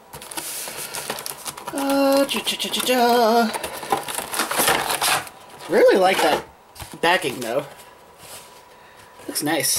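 Hard plastic pieces clatter and rattle as a plastic case is handled.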